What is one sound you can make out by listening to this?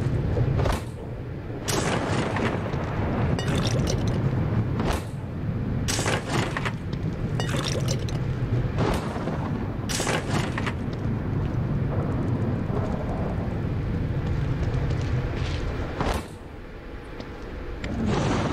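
Hands bang against a vending machine.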